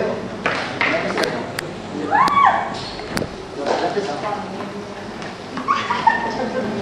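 Men talk and call out loudly in an echoing hall.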